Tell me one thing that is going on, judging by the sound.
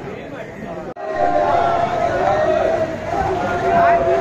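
A group of men chants loudly together.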